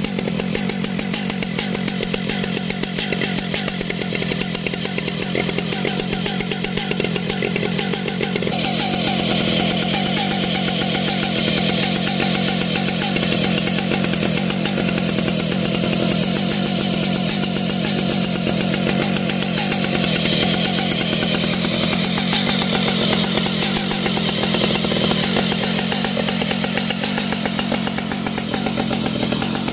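A chainsaw engine idles with a steady, rattling drone close by.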